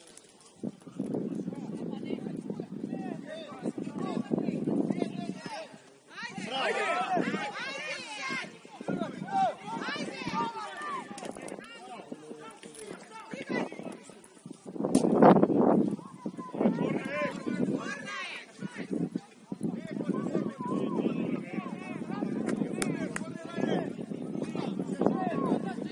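Young male players shout and call to each other across an open outdoor field.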